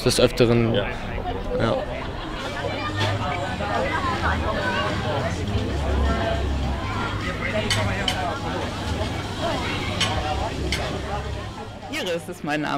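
A crowd chatters in the distance outdoors.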